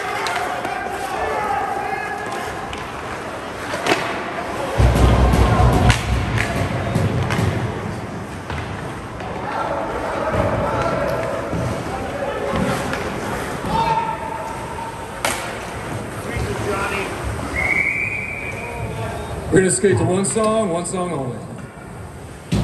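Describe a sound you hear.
Spectators murmur and call out in a large echoing rink.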